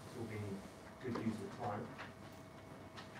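A man speaks calmly at a distance in a quiet room.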